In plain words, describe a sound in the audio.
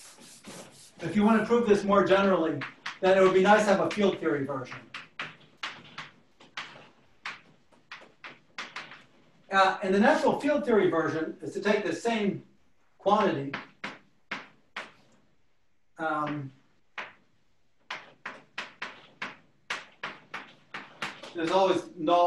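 A man lectures calmly, in a slightly echoing room.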